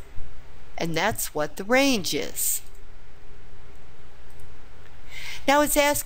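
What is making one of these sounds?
A middle-aged woman speaks calmly and clearly into a close microphone.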